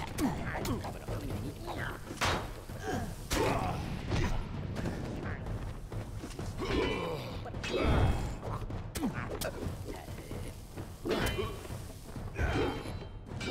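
Magic blasts crackle and whoosh.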